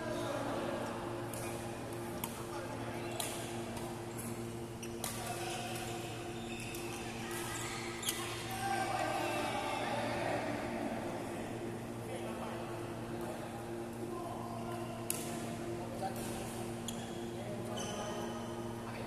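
Distant voices chatter across the hall.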